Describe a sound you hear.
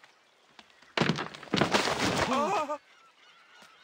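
Wooden boards creak and crash as a rotten structure collapses.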